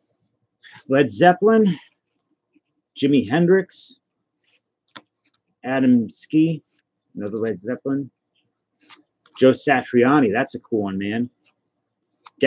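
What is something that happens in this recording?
Trading cards rustle and slide as they are handled.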